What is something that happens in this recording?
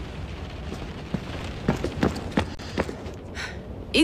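Footsteps sound on a hard floor.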